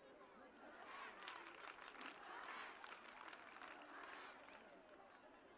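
A woman claps her hands rhythmically.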